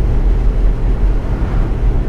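A van passes by.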